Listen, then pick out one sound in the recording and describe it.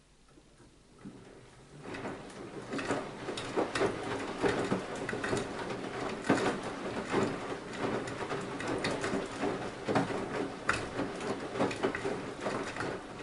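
A washing machine drum tumbles laundry, with water sloshing and clothes thumping.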